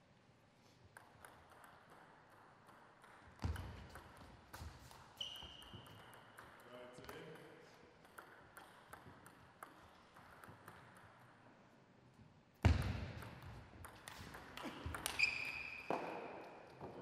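A table tennis ball clicks sharply back and forth off paddles and the table.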